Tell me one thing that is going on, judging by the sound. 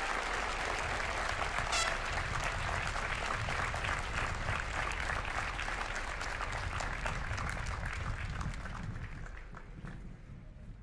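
A large crowd applauds outdoors, then the clapping fades away.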